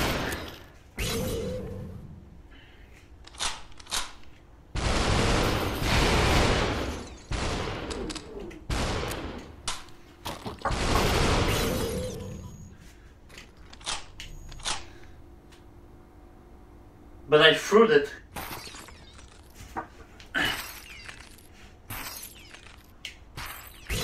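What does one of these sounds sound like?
Gunshots crack in quick, sharp bursts.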